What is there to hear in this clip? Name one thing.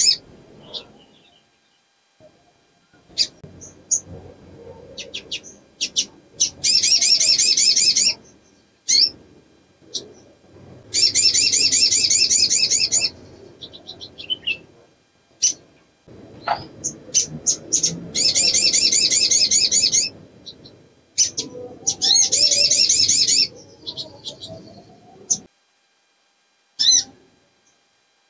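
A small bird sings close by in long fast trilling bursts, with sharp chirps in between.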